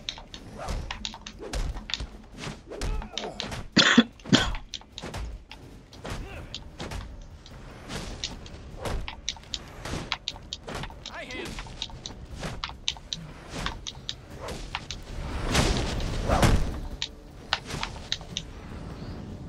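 Punches and kicks thud rapidly against bodies.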